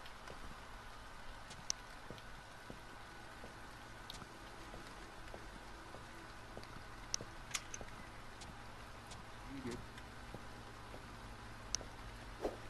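Footsteps tap steadily on a hard floor.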